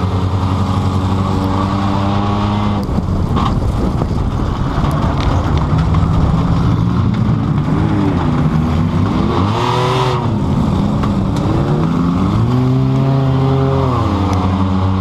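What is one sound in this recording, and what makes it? A car engine roars loudly and revs up and down.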